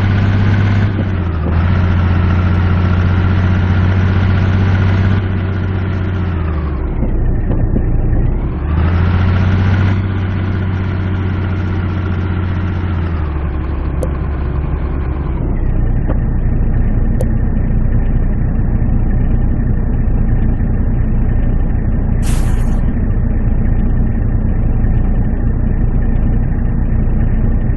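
A heavy truck engine rumbles, easing off, picking up again and then settling to a low idle.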